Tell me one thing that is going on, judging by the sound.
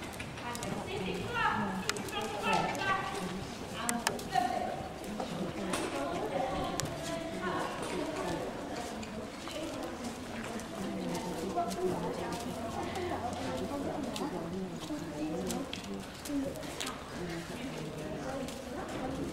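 Children and adults chatter in a large echoing hall.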